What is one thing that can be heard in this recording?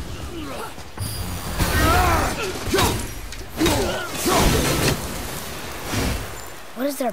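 Heavy axe blows strike hard in a fight.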